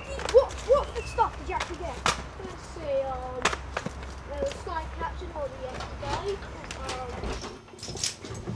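Young boys talk with animation outdoors.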